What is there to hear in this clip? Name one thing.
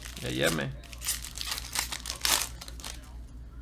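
A foil wrapper crinkles and rustles close by.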